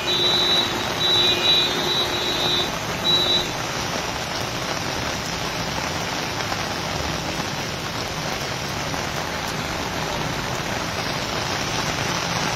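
A scooter engine hums as it rides through water.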